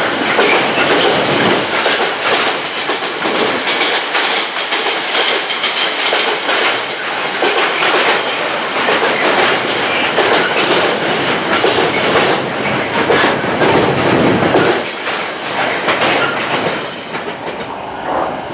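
A freight train rumbles and clatters steadily past on the rails.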